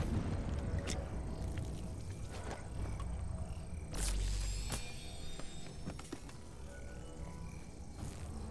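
A potion bubbles and gulps as it is drunk.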